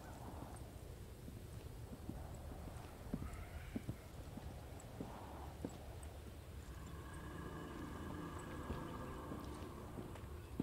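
Footsteps thud slowly on hard ground outdoors.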